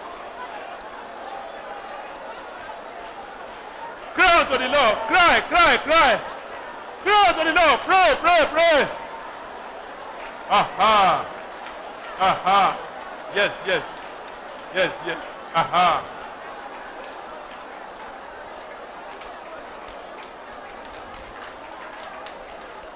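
A crowd of women cheers and sings in a large echoing hall.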